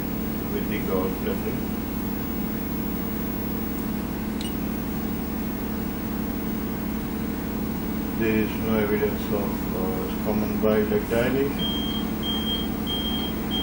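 An electronic machine hums steadily.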